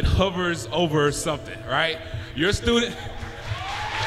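A man speaks with animation in a large echoing hall.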